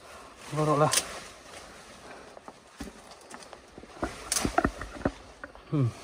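Leaves and branches rustle as a person pushes through dense bushes.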